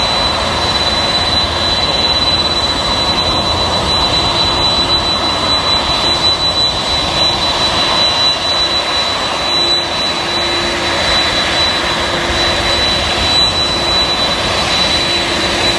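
A jet airliner's engines whine steadily as it taxis.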